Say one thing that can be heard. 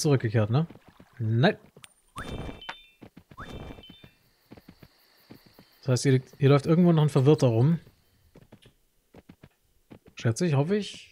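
Horse hooves clop steadily as a rider trots along.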